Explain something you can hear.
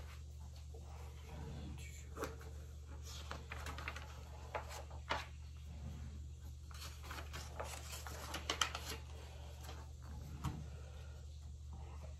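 A paper calendar rustles and flaps as pages are turned.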